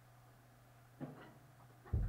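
A drum kit is struck.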